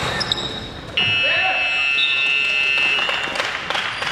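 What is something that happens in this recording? A buzzer sounds loudly.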